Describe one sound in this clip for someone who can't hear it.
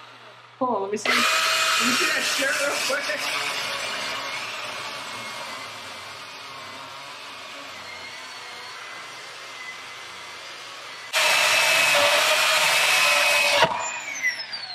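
A chainsaw revs loudly in bursts.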